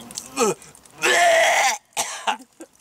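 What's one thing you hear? A man lets out a loud, harsh exclamation close by.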